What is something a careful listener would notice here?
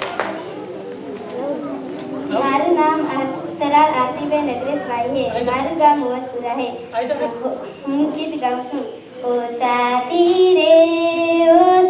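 A girl speaks shyly into a microphone, close by.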